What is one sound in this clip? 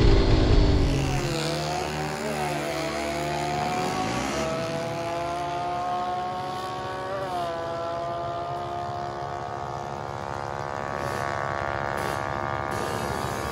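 A motorcycle engine idles and revs in bursts nearby.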